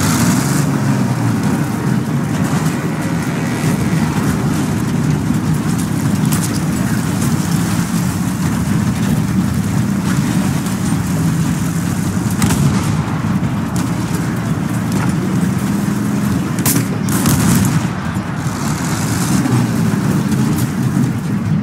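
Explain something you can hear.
A heavy tank engine rumbles and clanks steadily as it rolls forward.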